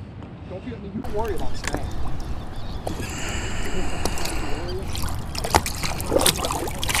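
Water splashes as a fish is released.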